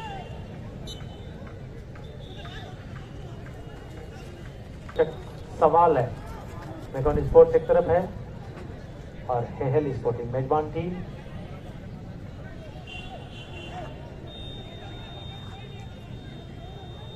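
A large outdoor crowd murmurs in the distance.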